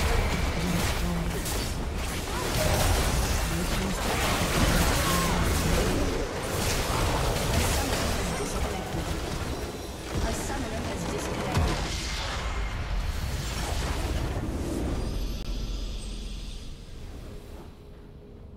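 Magic blasts, whooshes and explosions crash in a busy fight.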